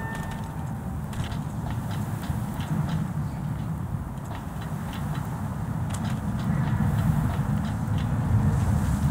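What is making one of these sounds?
Footsteps thud and clang on a metal sheet.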